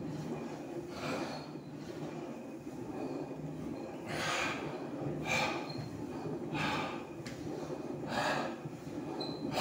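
A man breathes heavily.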